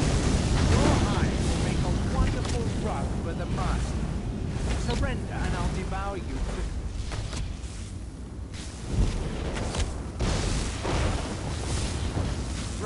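Electric magic crackles and zaps in bursts.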